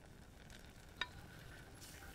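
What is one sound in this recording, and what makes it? A metal spoon clinks against a pan.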